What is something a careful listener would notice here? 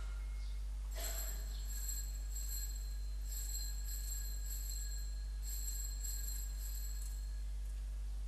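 A small hand bell rings repeatedly.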